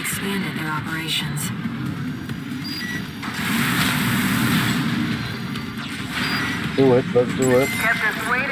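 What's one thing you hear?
Loud electronic game blasts and mechanical rumbling play throughout.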